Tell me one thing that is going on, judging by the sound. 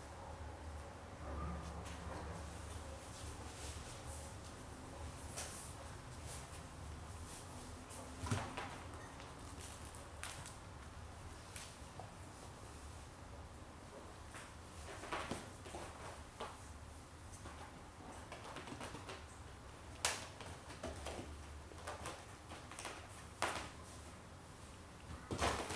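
Kittens' paws thump and scratch softly on a leather couch.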